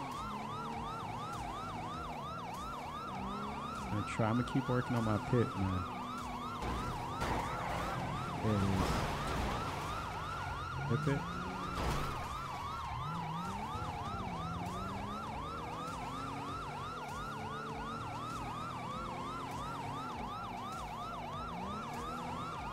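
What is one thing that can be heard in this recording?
A police siren wails steadily.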